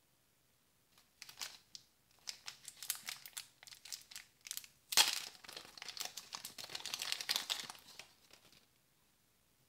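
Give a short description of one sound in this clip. A plastic wrapper crinkles and rustles as hands tear it open.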